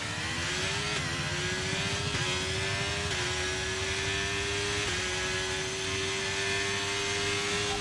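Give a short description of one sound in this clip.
A racing car engine roars at high revs, dipping briefly with each gear change.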